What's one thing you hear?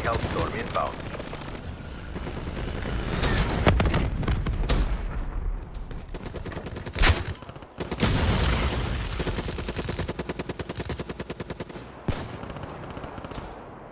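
Rapid gunfire rattles in short bursts.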